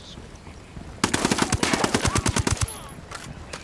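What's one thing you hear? A gun fires a rapid burst of shots close by.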